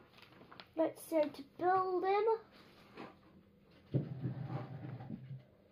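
Pages of a magazine rustle as a boy turns them.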